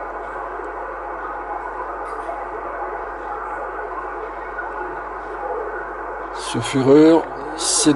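A radio receiver hisses with steady static through its loudspeaker.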